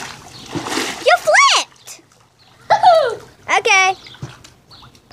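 A teenage girl squeals and laughs while swimming.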